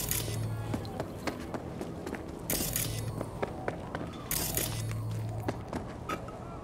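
Footsteps tread steadily on a hard floor.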